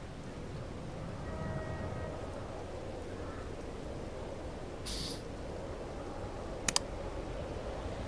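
A car engine hums steadily as a car drives along a road.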